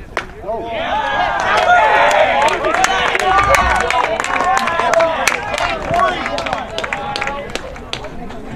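Young men shout and cheer excitedly outdoors.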